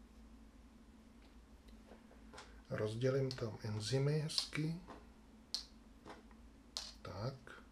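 Small plastic game pieces click as they are set down on a table.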